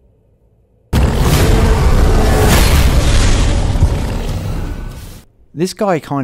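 A heavy blow lands with a loud crash.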